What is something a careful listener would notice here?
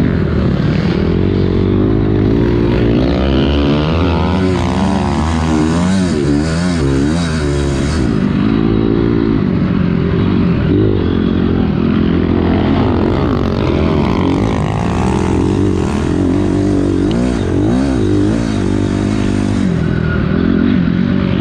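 A dirt bike engine revs loudly up close, rising and falling as it shifts.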